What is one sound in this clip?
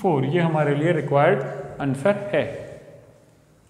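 A man speaks clearly into a close microphone.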